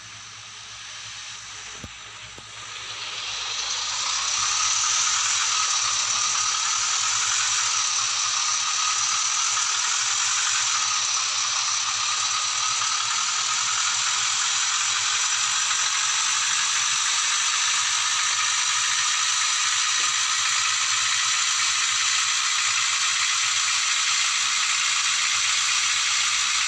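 A bus engine hums steadily as the bus drives along a road.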